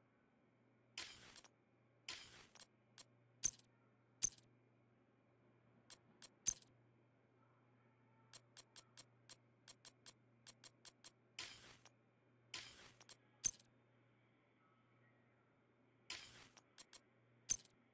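Soft swooshing tones sweep in now and then.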